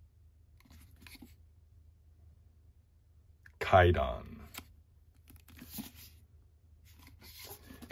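Hands slide a cardboard sleeve off a book.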